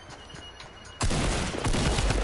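A pickaxe strikes a wooden wall with heavy thuds.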